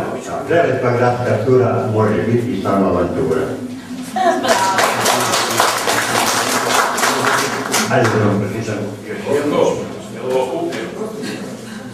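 An elderly man speaks into a microphone, heard through a loudspeaker in a room.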